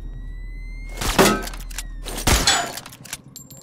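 A heavy landing thuds after a jump.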